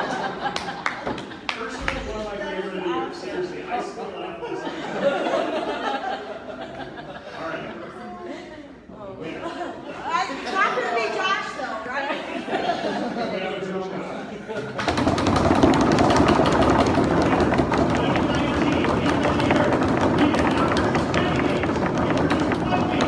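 Adults chatter and talk nearby in a busy room, growing much louder partway through.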